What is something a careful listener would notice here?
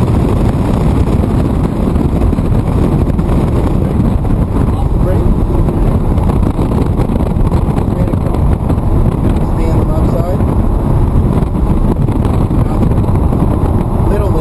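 Tyres rumble on the road at speed.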